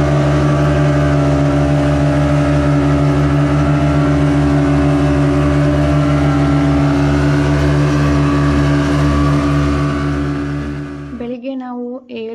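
A boat's outboard motor drones loudly and steadily.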